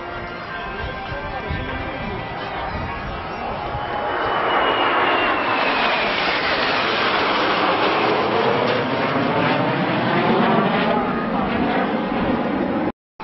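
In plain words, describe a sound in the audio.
Jet engines roar overhead, growing louder as the jets pass and then slowly fading.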